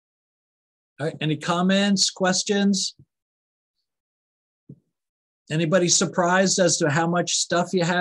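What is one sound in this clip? A woman speaks calmly and close into a microphone, with pauses.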